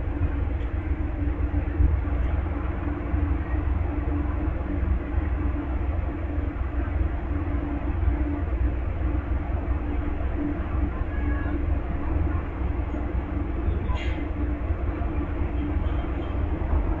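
A standing train's engine idles with a steady low hum.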